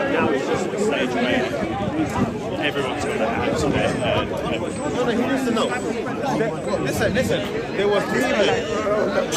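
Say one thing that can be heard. A crowd of men talk over one another outdoors, close by.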